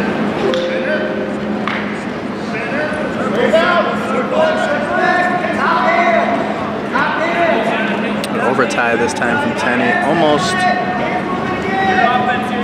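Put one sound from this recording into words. Shoes squeak on a wrestling mat.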